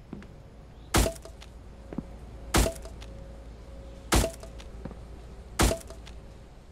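A hammer strikes wood in sharp, evenly spaced knocks.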